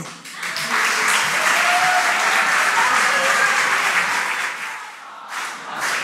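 A large crowd applauds loudly in a big hall.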